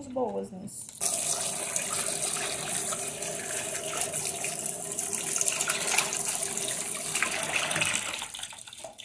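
Water runs from a tap and splashes into a metal basin.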